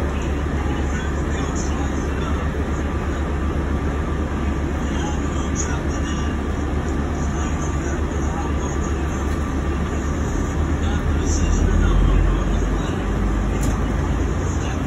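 The bus body rattles and creaks as it moves.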